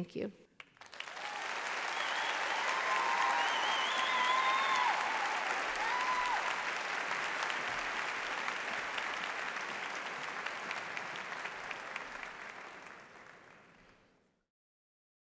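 A large audience applauds and cheers in a big echoing hall, then the applause fades away.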